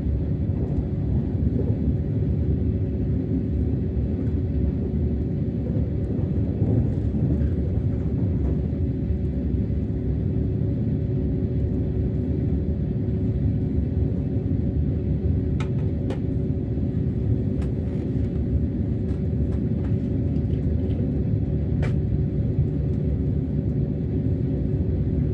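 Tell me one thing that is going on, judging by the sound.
A train rumbles steadily with a low, constant hum.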